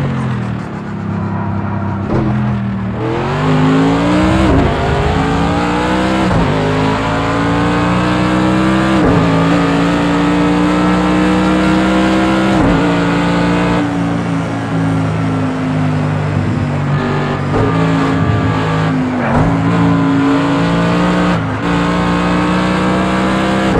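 A racing car engine roars loudly, revving up and dropping sharply at each gear change.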